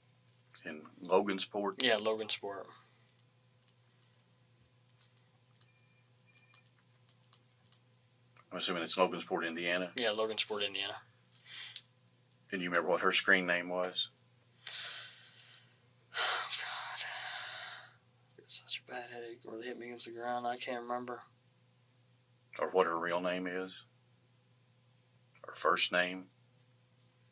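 A man speaks quietly in short bursts, heard from across a small room.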